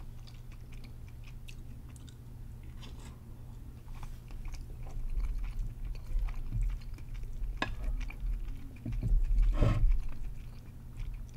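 A woman chews food wetly and close up.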